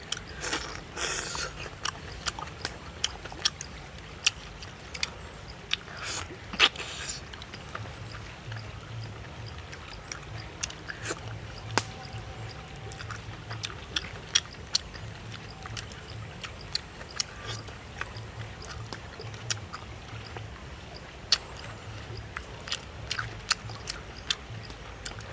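Crab shells crack and crunch in a man's hands.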